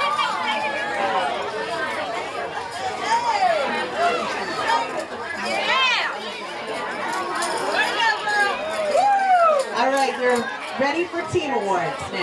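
A crowd of young girls chatters and calls out excitedly nearby.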